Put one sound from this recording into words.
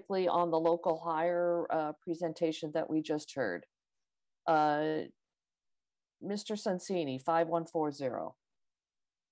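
A woman speaks calmly over an online call, with short pauses.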